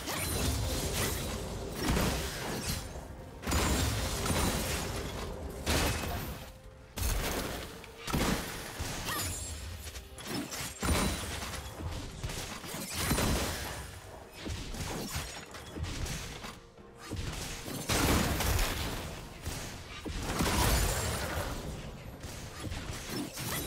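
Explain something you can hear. Game fighting effects crackle and burst in quick succession.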